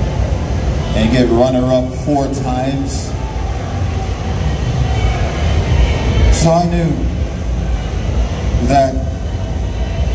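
A man speaks in bursts into a microphone over loudspeakers in a large echoing hall.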